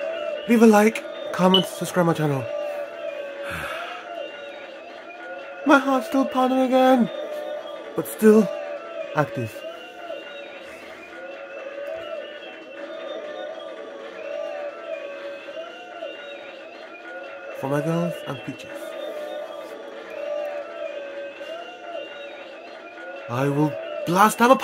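Upbeat electronic game music plays through a television speaker.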